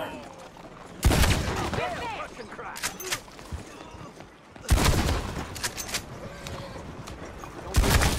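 A shotgun fires loud blasts.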